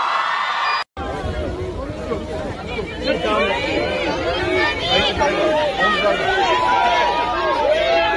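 A crowd of people chatter and call out excitedly close by.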